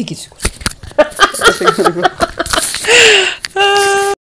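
A woman laughs brightly.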